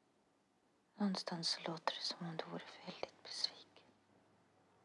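A young woman speaks softly and hesitantly, close by.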